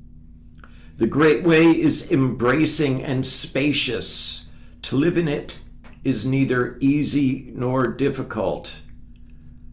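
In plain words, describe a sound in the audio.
An older man speaks calmly and clearly into a microphone, heard as over an online call.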